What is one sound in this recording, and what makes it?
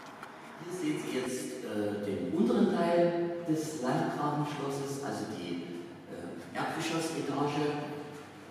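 A middle-aged man speaks calmly, close by, in an echoing room.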